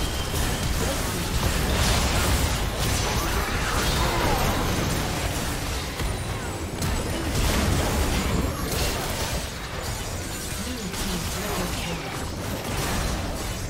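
Game spells and attacks crackle and boom in a hectic battle.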